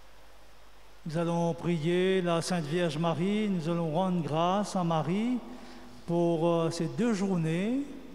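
A man sings slowly through a microphone.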